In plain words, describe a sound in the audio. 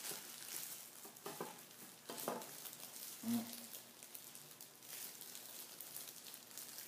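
Plastic gloves crinkle and rustle.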